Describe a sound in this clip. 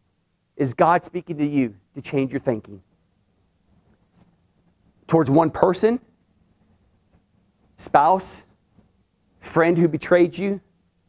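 A middle-aged man speaks with animation in short bursts, close and clear.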